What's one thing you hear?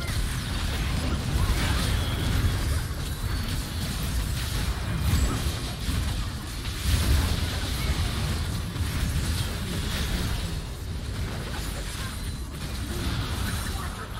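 Fantasy battle sound effects clash and blast in a game.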